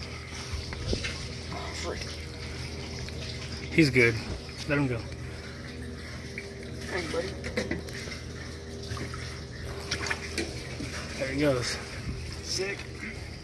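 Water sloshes and splashes softly against the side of a boat.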